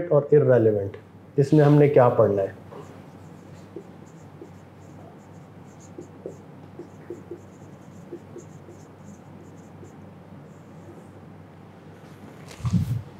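A marker squeaks and taps faintly on a whiteboard.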